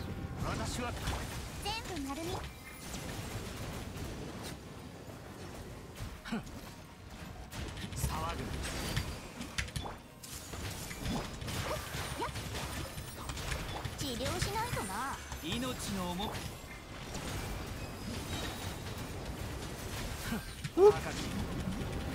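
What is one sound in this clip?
Game combat effects whoosh, crackle and boom.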